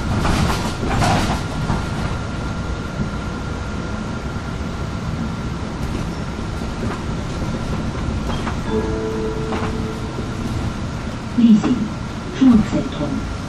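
The bus interior rattles and clatters over bumps.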